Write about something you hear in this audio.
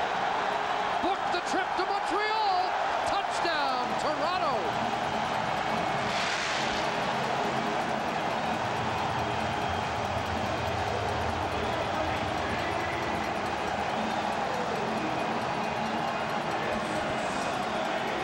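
A large crowd cheers and roars loudly in a big echoing stadium.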